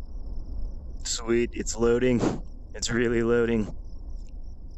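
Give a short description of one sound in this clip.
A man speaks briefly with animation.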